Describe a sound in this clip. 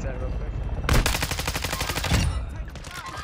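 Gunfire rattles in a rapid burst.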